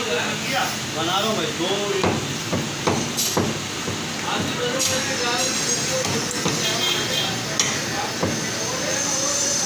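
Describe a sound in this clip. A knife chops through meat onto a wooden block with sharp thuds.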